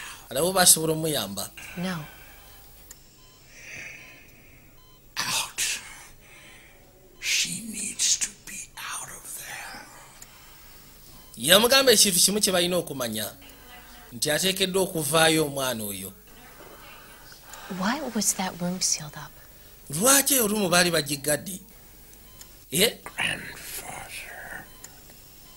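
A young woman speaks softly and earnestly, close by.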